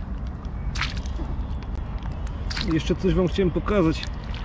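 Boots squelch through wet mud.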